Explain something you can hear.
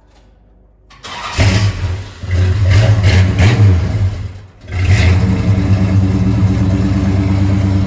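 A car engine starts up and revs loudly with a deep, rumbling roar.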